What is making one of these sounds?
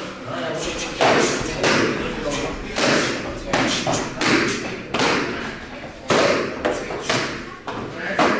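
Kicks thud sharply against a hand-held pad, again and again.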